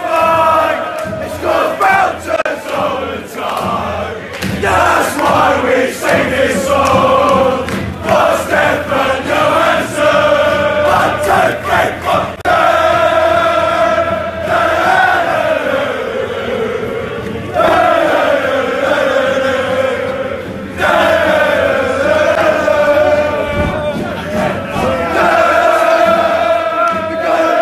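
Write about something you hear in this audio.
A large crowd of young men chants and sings loudly and close by, echoing in a hall.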